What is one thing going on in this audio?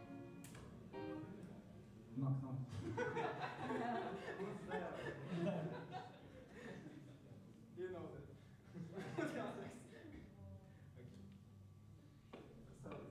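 A band plays live with electric guitars and drums in an echoing room.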